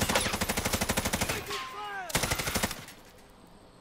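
A rifle fires a rapid burst of gunshots.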